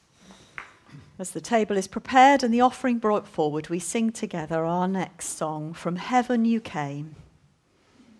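A woman speaks clearly through a microphone in a reverberant hall.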